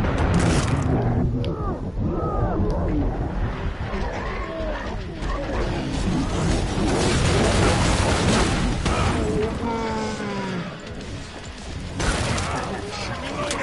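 Monsters screech and growl.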